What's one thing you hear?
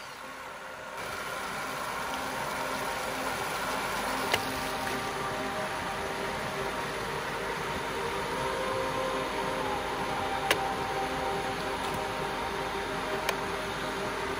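A small electric motor hums steadily.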